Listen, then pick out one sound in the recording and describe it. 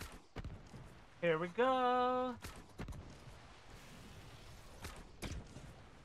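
A bow twangs as arrows are loosed.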